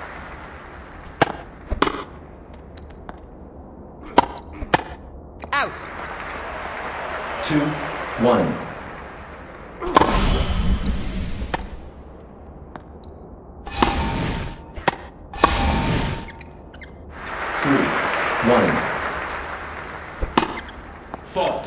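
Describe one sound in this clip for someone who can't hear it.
A tennis ball is struck with a racket in sharp pops.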